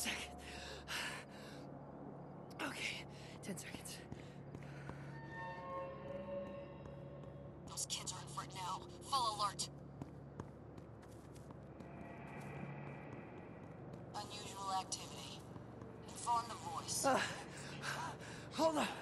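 Footsteps thud quickly on pavement.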